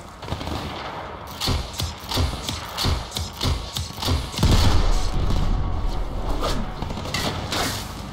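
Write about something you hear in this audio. A bow twangs as arrows are fired in quick bursts.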